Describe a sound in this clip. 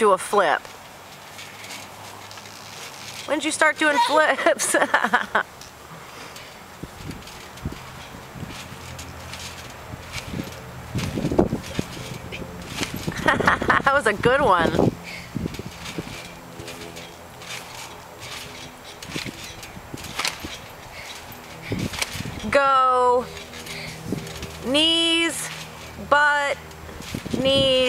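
A trampoline thumps softly under bouncing feet.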